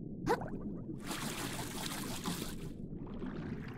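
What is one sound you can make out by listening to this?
Bubbles fizz and gurgle underwater.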